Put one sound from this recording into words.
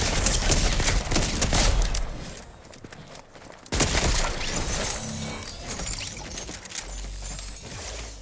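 Rapid gunshots crack in a video game.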